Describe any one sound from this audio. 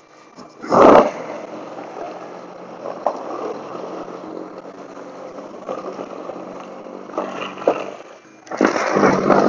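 A snow blower engine hums steadily outdoors.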